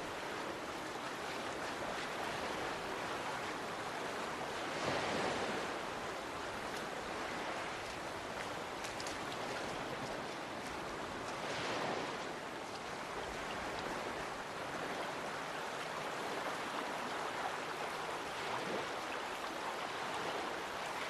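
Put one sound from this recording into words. Waves wash steadily onto a beach outdoors.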